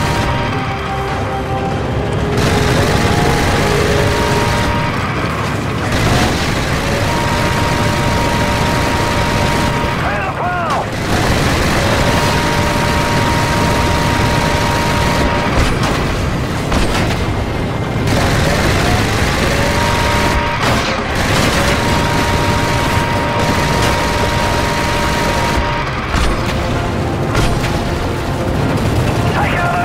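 A heavy rotary machine gun fires in long rapid bursts.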